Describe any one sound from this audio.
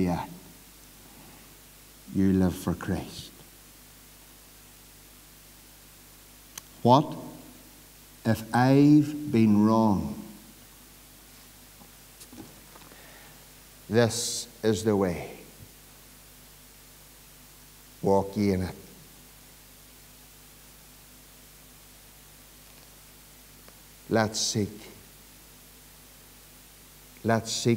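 A middle-aged man preaches forcefully into a microphone in short bursts with long pauses, in an echoing hall.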